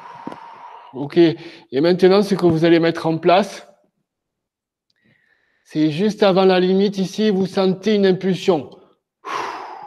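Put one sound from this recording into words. A man speaks calmly and slowly close to a microphone.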